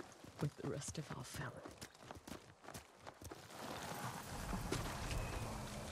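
Horses' hooves clop and rustle on a dirt path.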